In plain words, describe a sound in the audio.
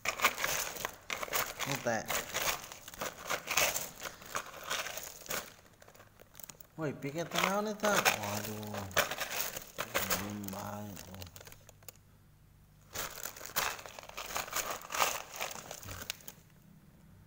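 Wet pebbles clatter and scrape as a hand stirs them.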